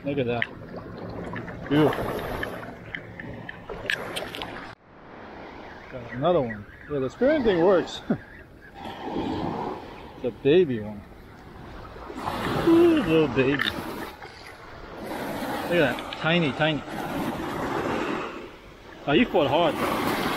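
Small waves splash and wash up onto the shore.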